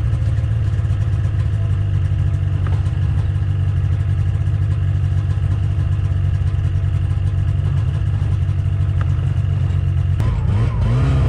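A snowmobile engine idles with a steady low hum.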